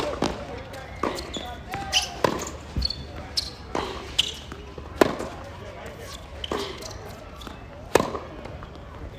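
Tennis shoes squeak and scuff on a hard court.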